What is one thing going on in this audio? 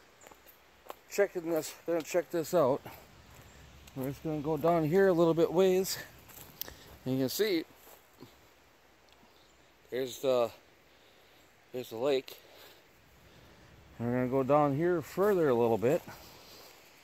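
A middle-aged man talks calmly close by, in short bursts.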